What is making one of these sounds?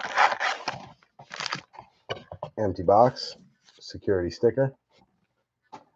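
Plastic-wrapped packs rustle and tap together as they are handled.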